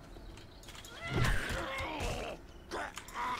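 A zombie growls and snarls.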